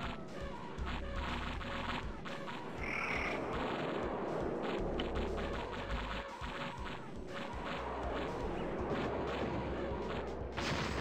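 Explosions boom and crackle in a game battle.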